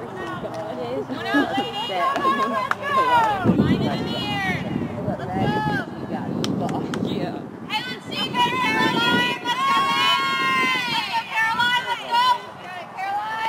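Young women chant and cheer at a distance outdoors.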